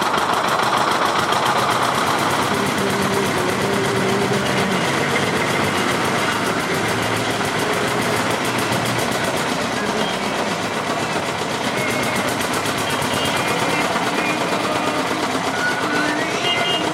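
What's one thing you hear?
A hand pump creaks as it is worked up and down.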